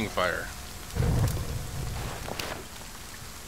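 A torch catches fire with a soft whoosh.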